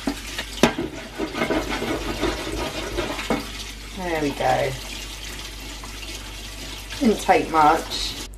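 A brush scrubs a baking tray with a scraping sound.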